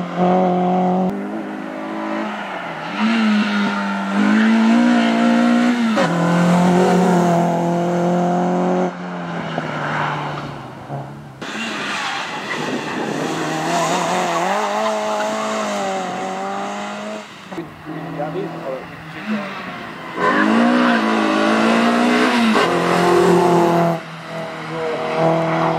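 A small car's engine revs hard as it speeds by, rising and falling in pitch with each gear change.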